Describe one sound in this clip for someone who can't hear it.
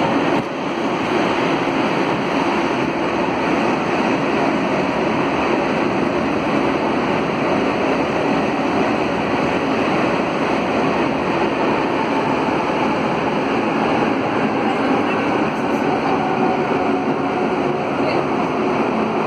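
A subway train rumbles and roars steadily through a tunnel.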